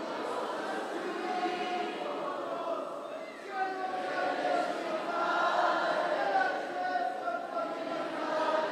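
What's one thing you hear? A group of men sing along in the background.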